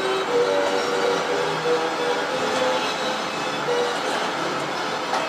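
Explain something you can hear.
Cheerful carousel organ music plays steadily throughout.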